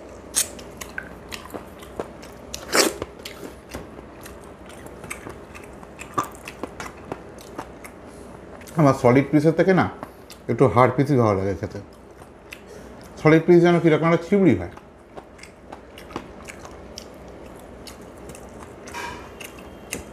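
Fingers squish and pick through soft food on a metal plate.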